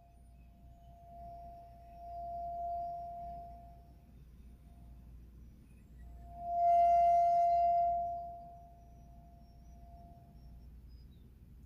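An end-blown flute plays long, soft, held notes close by.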